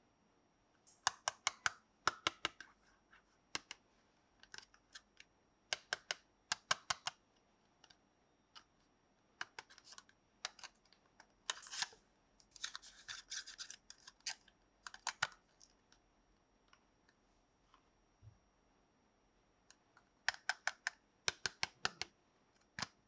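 Fingernails tap and click on a small cardboard box.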